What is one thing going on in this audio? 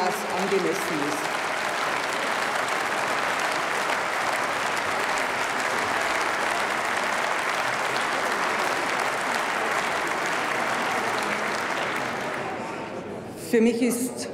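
A large crowd applauds steadily and then fades.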